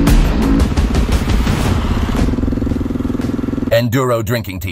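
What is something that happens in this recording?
A dirt bike engine revs loudly.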